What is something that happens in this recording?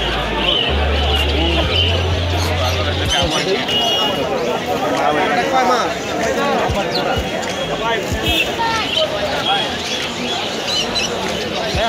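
A crowd of men chatters loudly all around, outdoors.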